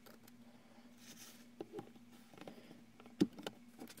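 A paper tissue rustles and crumples.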